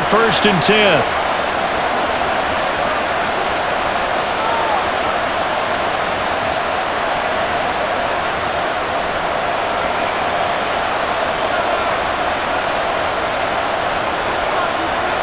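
A stadium crowd roars steadily in a large open space.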